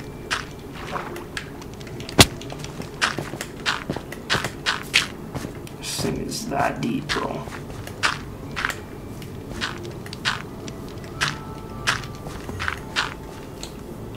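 Blocks of dirt break with short crunching thuds, again and again.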